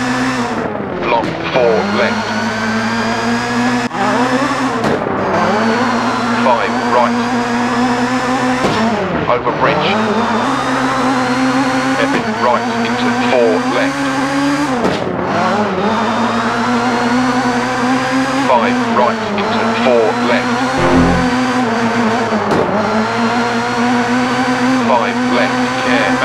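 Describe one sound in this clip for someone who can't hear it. A rally car engine revs hard, rising and dropping in pitch as gears change.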